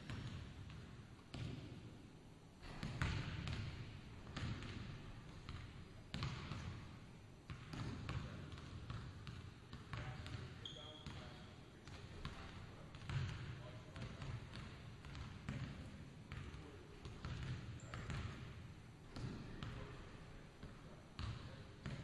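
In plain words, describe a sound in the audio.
Players' sneakers squeak on the hardwood floor.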